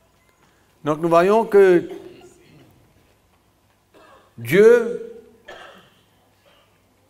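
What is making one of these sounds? An older man speaks slowly into a microphone in a room with a slight echo.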